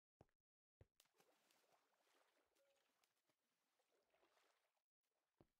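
Water flows and splashes nearby.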